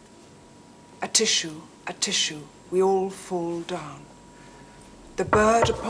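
A woman sings.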